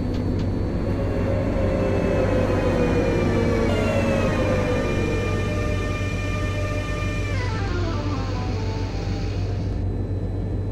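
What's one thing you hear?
A train's motor whine drops in pitch as the train slows.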